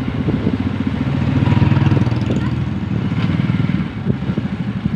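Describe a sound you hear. A vehicle drives toward and passes close by.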